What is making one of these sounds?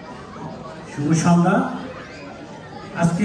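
A man speaks into a microphone, heard through loudspeakers in an echoing hall.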